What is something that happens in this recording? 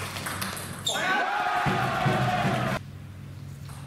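A group of young men cheers and shouts loudly.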